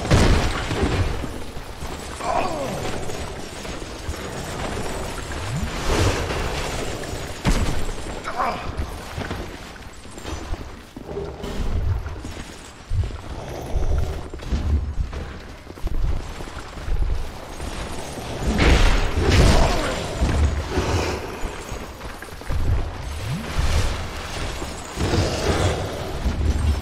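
Metal weapons clang and strike in a fight.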